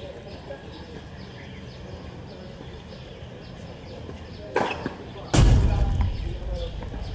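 A tennis racket strikes a ball.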